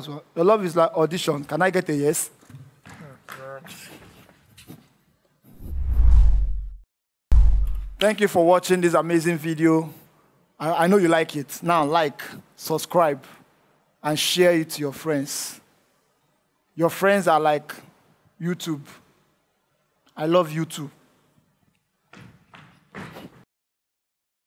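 A young man speaks with animation into a headset microphone.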